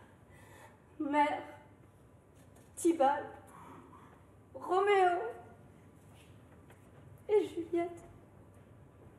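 A young woman sings in short, anguished phrases in a large echoing hall.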